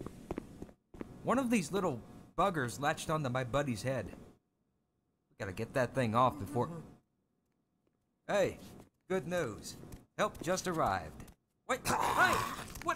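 A man talks nearby, calmly and with some animation.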